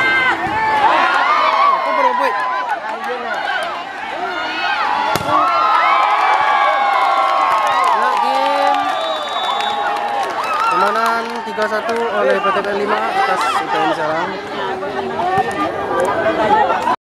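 A crowd of young men and women cheers and shouts loudly outdoors.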